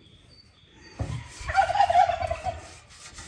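A pastry brush swishes across a metal tray.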